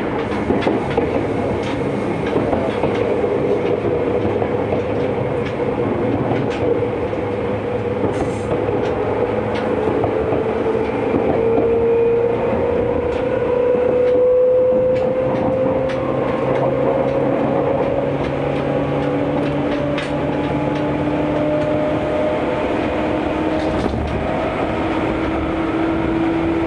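A train rumbles steadily along the rails, its motor whining and slowly rising in pitch.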